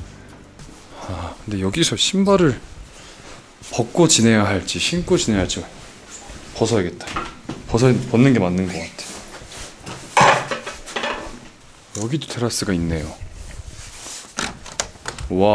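A young man talks casually close to a microphone.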